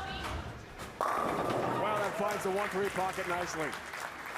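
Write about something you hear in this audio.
Bowling pins crash and clatter as the ball strikes them.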